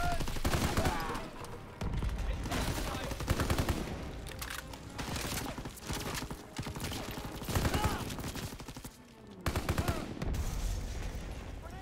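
Bursts of gunfire ring out in a large echoing hall.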